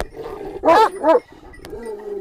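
A dog barks loudly up close.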